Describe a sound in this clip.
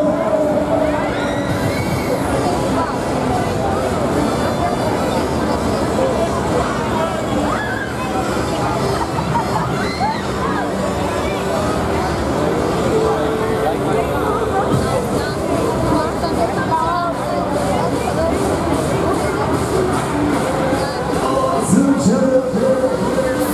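Riders scream and shout on a fairground ride.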